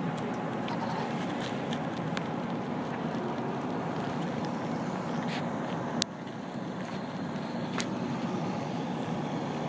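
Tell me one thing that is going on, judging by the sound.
Pickup truck engines hum as a line of vehicles rolls slowly past outdoors.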